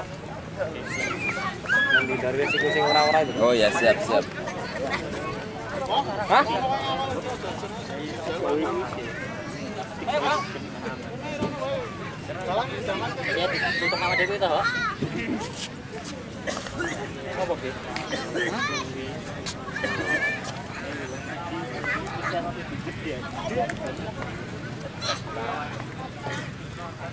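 A crowd chatters in the distance.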